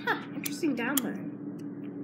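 A button clicks as a finger presses it.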